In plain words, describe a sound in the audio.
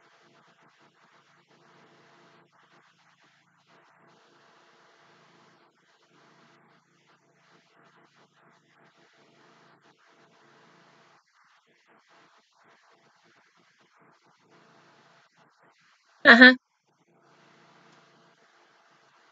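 A young woman sings softly close by.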